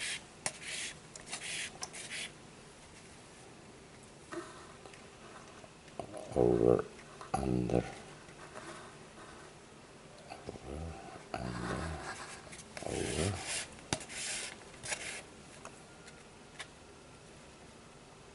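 Cord rustles and scrapes against a cardboard tube.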